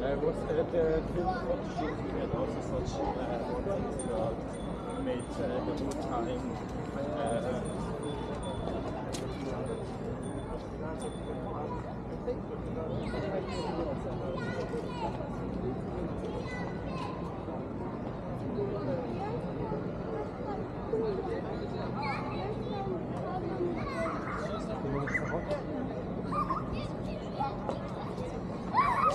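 Nearby people talk in a busy street.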